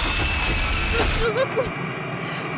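A young woman screams close to a microphone.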